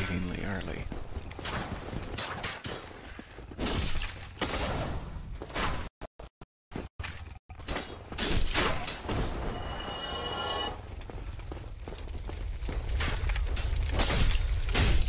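Heavy armoured footsteps thud on stone steps.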